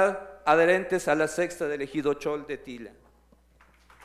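A man speaks loudly over a loudspeaker in a large echoing hall.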